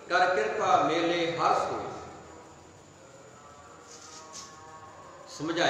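A man sings slowly into a microphone, close up.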